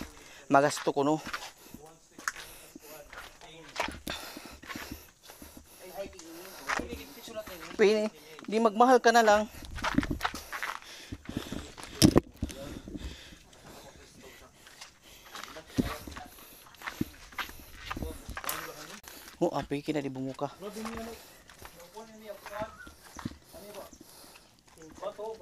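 Young men talk with animation close by, outdoors.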